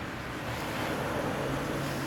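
A truck drives past close by.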